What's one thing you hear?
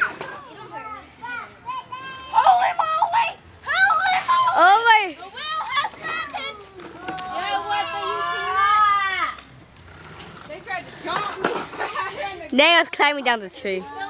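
Children shout and scream excitedly nearby.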